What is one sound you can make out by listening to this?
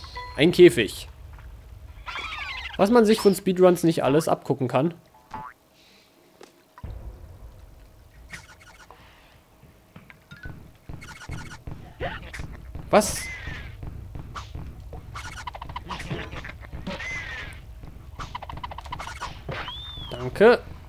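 Cartoonish video game sound effects boing, chime and whoosh.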